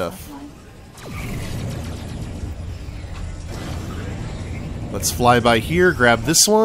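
A spaceship engine roars with a steady low rumble.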